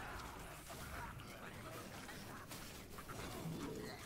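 Fire roars in a sudden blast.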